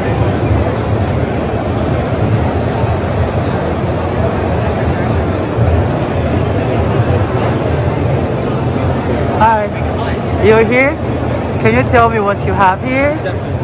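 A crowd murmurs in a large, echoing hall.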